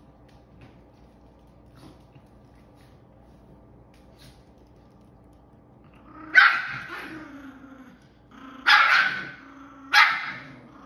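A dog rummages and rustles through soft bedding.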